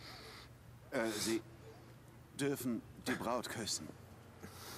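A man speaks calmly and briefly.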